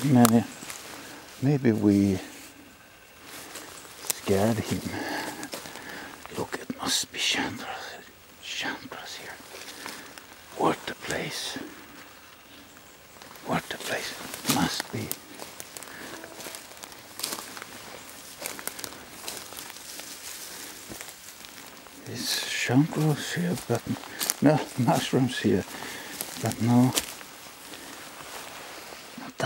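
Footsteps crunch over dry leaves and twigs on a forest floor.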